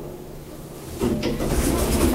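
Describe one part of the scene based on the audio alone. Elevator doors rumble open.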